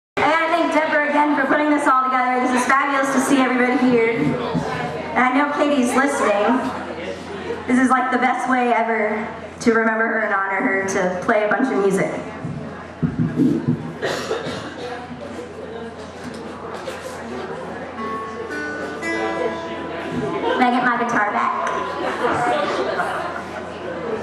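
Acoustic guitars strum and pick a melody.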